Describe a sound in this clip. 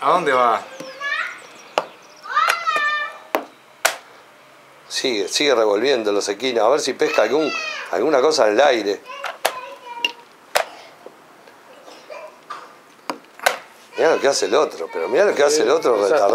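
Wooden chess pieces tap down on a board.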